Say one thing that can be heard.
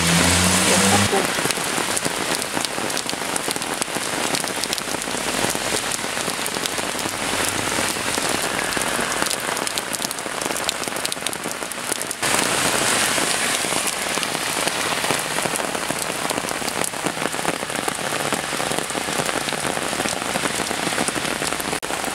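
Floodwater rushes and roars steadily.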